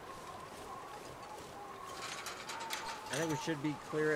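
A metal gate swings open.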